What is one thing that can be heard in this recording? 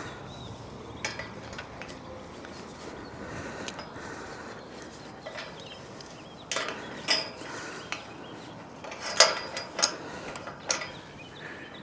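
Metal clanks as a climber's gear knocks against a steel tower.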